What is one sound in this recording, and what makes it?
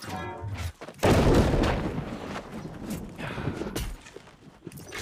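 A magic blast bursts with a loud whoosh.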